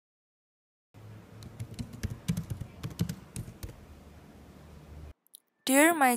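Fingers type quickly on a laptop keyboard with soft clicks.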